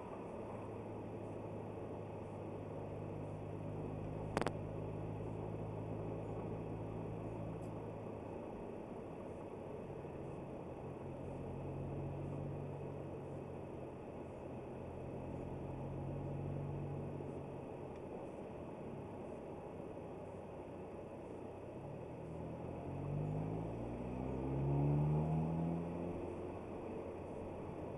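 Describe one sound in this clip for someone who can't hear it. A car engine hums steadily from inside the car, revving up near the end.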